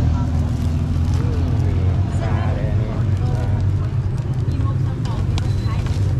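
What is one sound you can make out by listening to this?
A plastic bag rustles as food is scooped into it.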